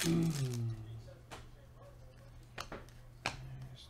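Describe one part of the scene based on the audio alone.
Trading cards shuffle and flick against each other.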